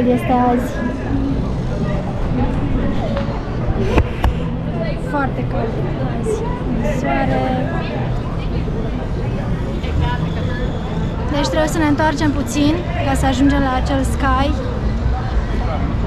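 A middle-aged woman talks calmly close to a microphone.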